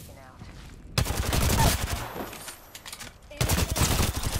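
Video game gunfire rattles out in bursts.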